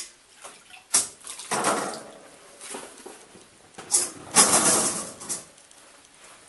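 Potatoes tumble into a wire basket with dull thuds.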